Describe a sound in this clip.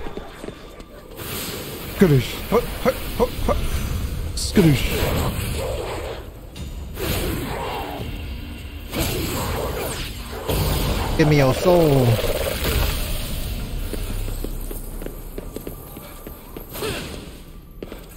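Game magic crackles and bursts with bright zaps.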